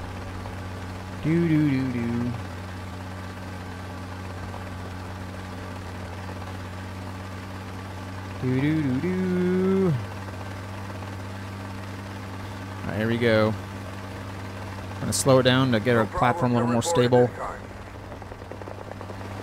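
A helicopter engine drones steadily with a low rotor hum.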